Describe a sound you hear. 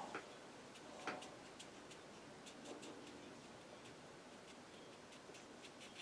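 A brush dabs softly on paper.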